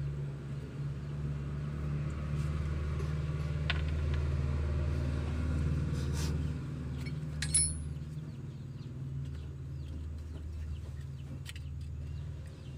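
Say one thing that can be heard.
Metal parts click against a diesel injection pump.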